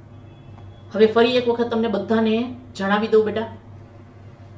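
A woman speaks calmly into a close microphone, explaining.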